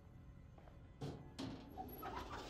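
A drawer slides open with a click.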